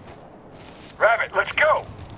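A fire burns and crackles.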